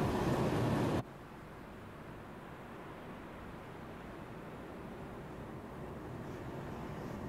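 A distant train approaches with a low rumble that slowly grows louder.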